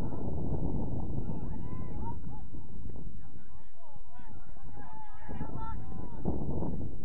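Players shout to each other far off across an open field.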